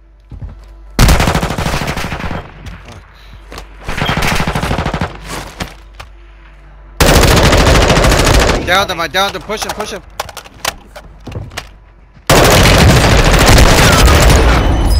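Gunfire rattles loudly in short, heavy bursts.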